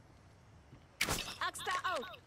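A gun is drawn with a sharp metallic clack.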